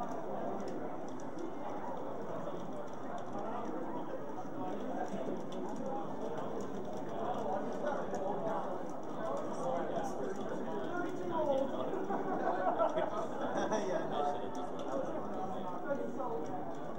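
A crowd of young men chatters and cheers loudly nearby.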